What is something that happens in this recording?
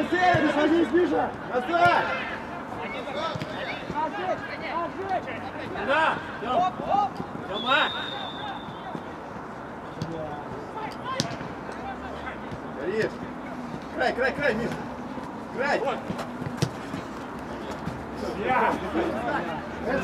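Young men shout to each other outdoors across an open pitch.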